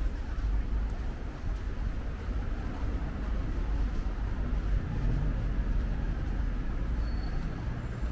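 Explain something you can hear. A bus engine hums as it idles nearby.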